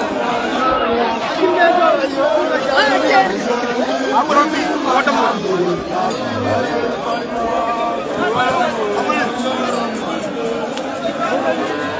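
A crowd of young men sings and chants loudly together outdoors.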